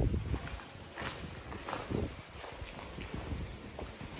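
Footsteps crunch on a gritty floor in an echoing tunnel.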